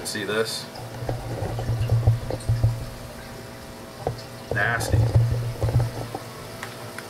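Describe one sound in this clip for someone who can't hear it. Water sloshes around inside a bucket.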